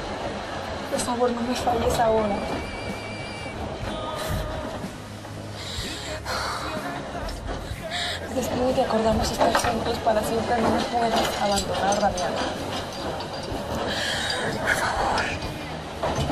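A young woman sobs and cries close by.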